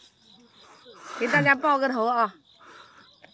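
A young woman speaks, close by.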